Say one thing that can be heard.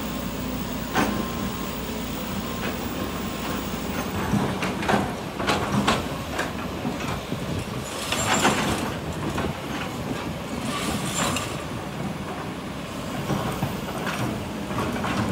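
Rocks and soil clatter and thud into a truck bed.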